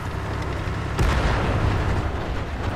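A shell explodes nearby with a crash of falling debris.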